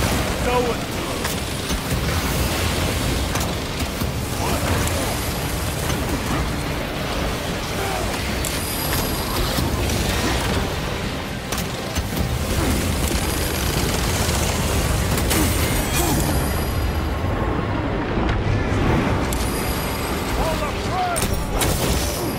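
Monsters screech and snarl.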